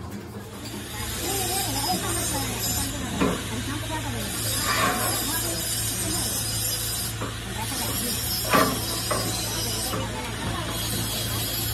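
Metal parts clank against a metal tank.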